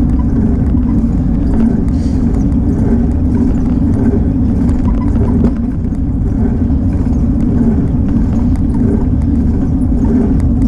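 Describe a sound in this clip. Tyres hum on smooth asphalt.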